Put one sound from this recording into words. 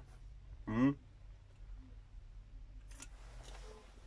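A man sips from a can and swallows.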